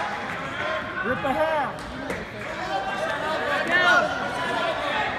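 A nearby spectator shouts loudly.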